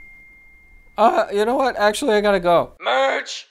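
A young man talks in a high, silly voice.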